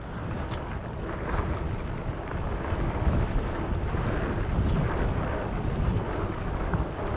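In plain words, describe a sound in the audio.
Wind rushes and buffets outdoors.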